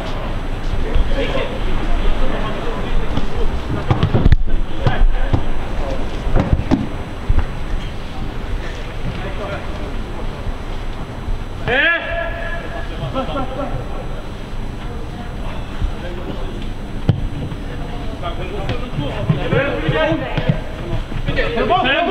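Players shout to each other across an open field, heard from a distance.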